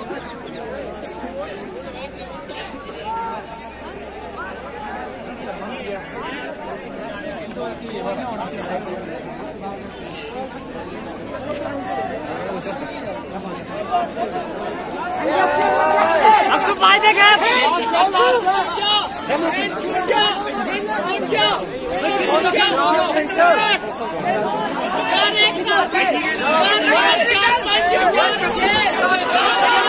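A crowd of young men chatters outdoors.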